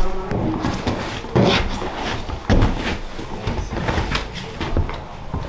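Old carpet and padding rip and tear as they are pulled up from a floor.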